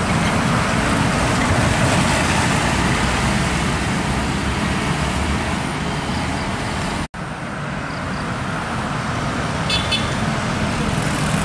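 A heavy truck engine rumbles and roars loudly close by.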